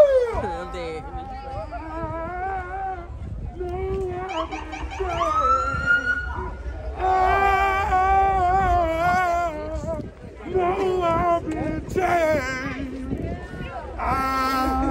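A group of young men chant and sing loudly in unison outdoors.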